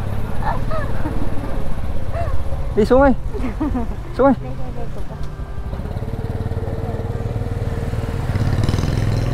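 A motor scooter engine hums steadily.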